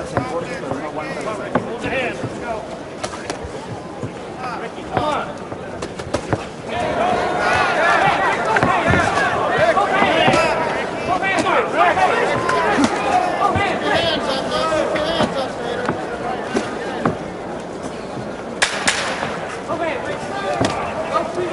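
A crowd cheers and shouts in a large hall, swelling louder partway through.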